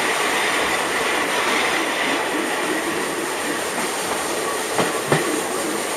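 A steam locomotive chuffs steadily.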